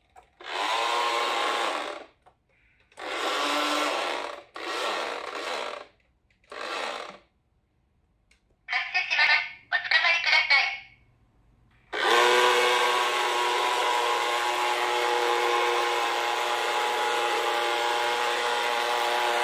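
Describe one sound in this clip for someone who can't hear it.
A toy bus plays recorded sounds through a small tinny speaker.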